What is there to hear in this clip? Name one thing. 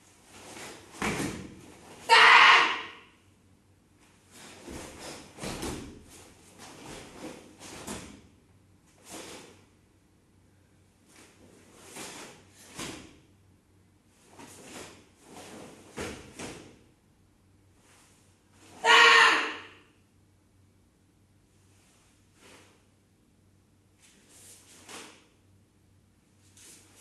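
Bare feet thump and slide on a soft mat.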